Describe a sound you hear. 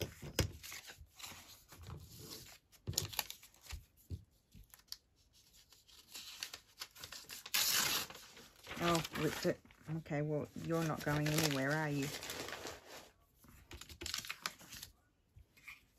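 Sheets of paper rustle and crinkle as they are handled.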